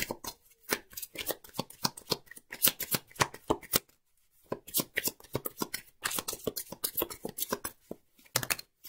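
A deck of cards is shuffled by hand.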